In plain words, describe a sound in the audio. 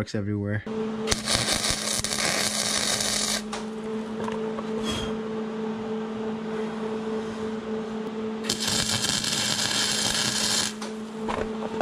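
An arc welder crackles and hisses in short bursts.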